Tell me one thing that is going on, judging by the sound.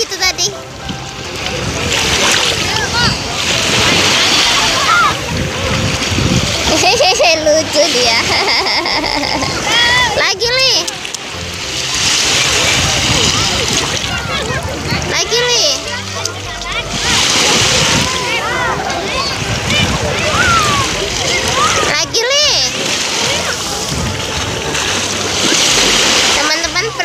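Small waves wash and break on the shore.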